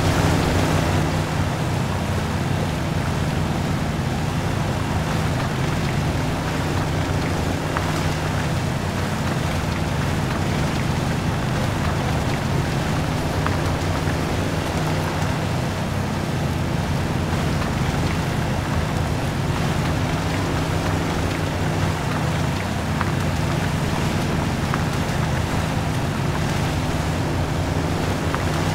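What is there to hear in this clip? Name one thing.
Tyres squelch through deep mud.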